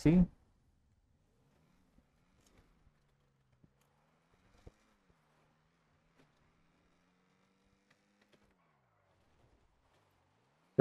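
A car engine hums and revs faintly.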